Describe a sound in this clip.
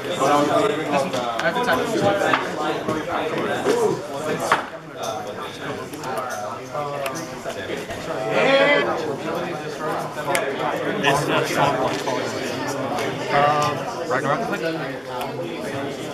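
Playing cards are slapped down on a table.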